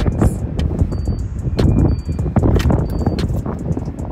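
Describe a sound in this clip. A parking meter beeps a few times.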